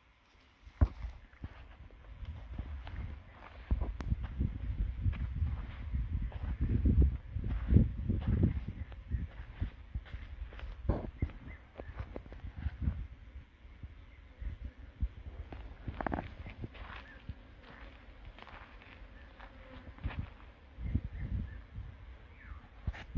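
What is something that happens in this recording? Wind blusters outdoors against a microphone.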